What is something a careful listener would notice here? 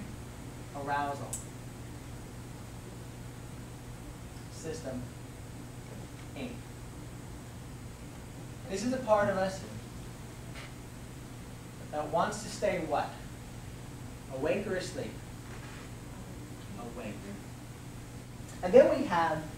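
An elderly man speaks in short bursts, lecturing aloud in a room.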